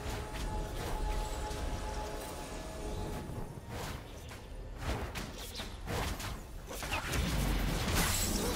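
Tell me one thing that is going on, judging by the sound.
Video game sound effects of spells and attacks whoosh and crackle.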